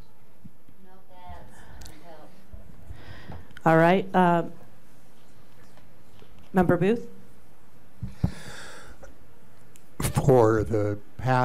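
A woman speaks through a microphone in short, hesitant bursts.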